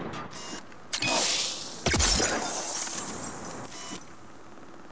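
A rifle fires loud, booming shots that ring out.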